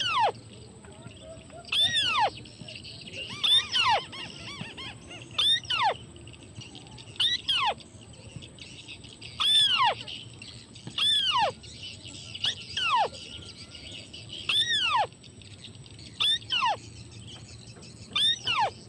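A bird repeats a loud, falling whistled call every couple of seconds.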